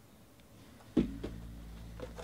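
A box is set down with a thud on a table.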